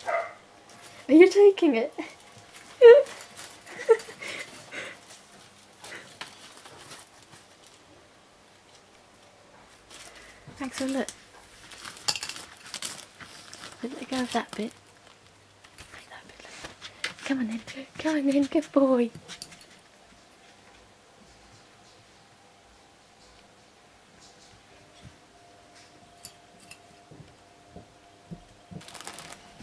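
A foil balloon crinkles and rustles as a ferret drags it across a floor.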